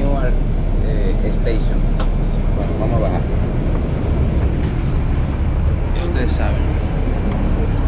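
A man talks close by in a low voice.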